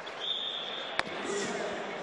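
A ball smacks hard against a wall in a large echoing hall.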